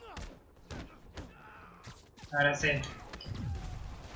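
Punches and blows land with sharp thuds in a fight.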